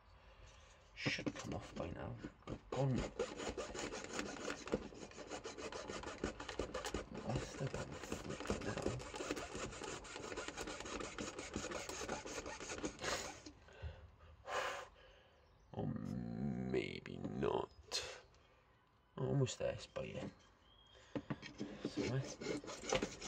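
A fine-toothed hand saw rasps quickly back and forth through plastic.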